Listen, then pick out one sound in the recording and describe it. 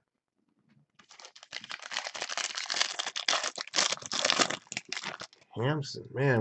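A foil wrapper crinkles and tears as a pack is ripped open.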